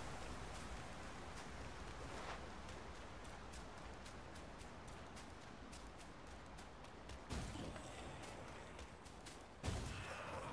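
Footsteps run over dry, crunching ground.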